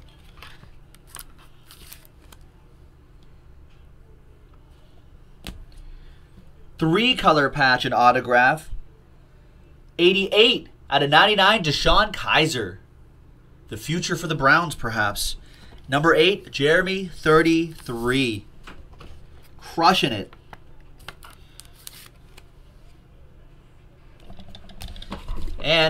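Plastic card sleeves rustle and tap between fingers.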